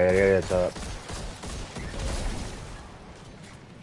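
A weapon fires in rapid bursts.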